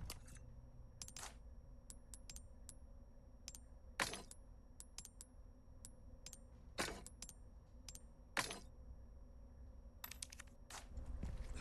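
Short menu clicks and chimes sound one after another.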